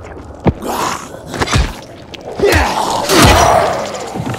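An axe strikes flesh with wet, heavy thuds.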